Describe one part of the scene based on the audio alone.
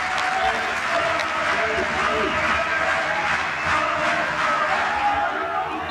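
A stadium crowd cheers and roars throughout.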